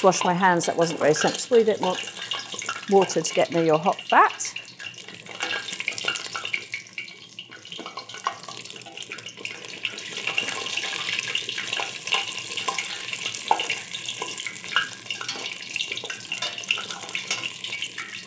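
A spoon clinks and scrapes against a metal pot.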